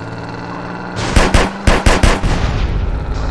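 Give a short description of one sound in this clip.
A car crashes into another car with loud bangs.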